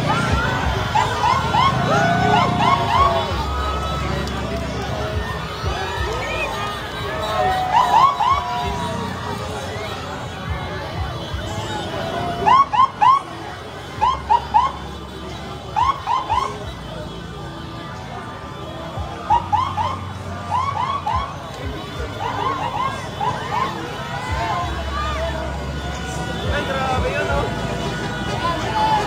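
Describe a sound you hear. A crowd chants in short, rhythmic bursts.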